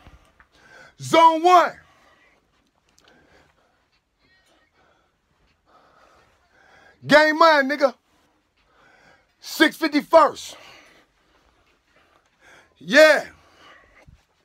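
A young man sings loudly in sudden high, wavering cries.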